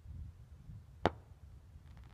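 A rocket bursts high overhead with a sharp pop.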